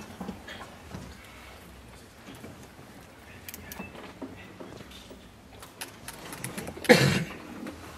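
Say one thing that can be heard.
Men murmur quietly nearby.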